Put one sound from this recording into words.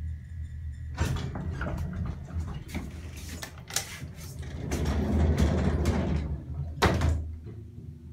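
A lift door rattles and clatters as it slides open and shut.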